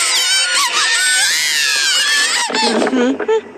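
A man cries out in a high, strained voice.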